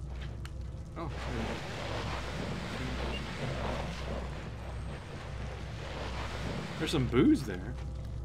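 A heavy case scrapes along a wooden floor.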